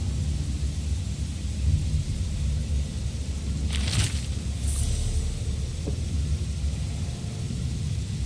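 A deep low hum drones steadily.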